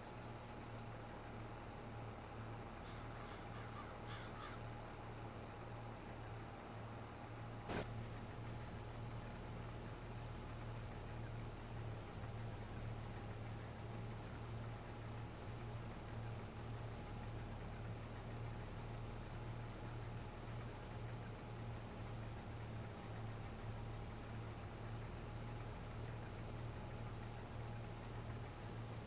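A combine harvester's engine drones steadily.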